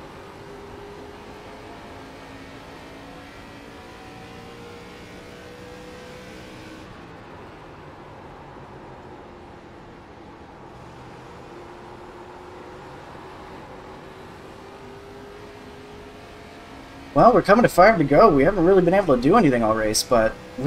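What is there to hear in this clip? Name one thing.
Race car engines drone steadily, their pitch slowly rising and falling.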